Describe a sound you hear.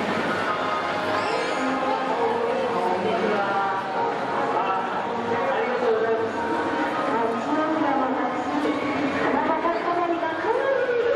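A large crowd of people chatters and calls out outdoors.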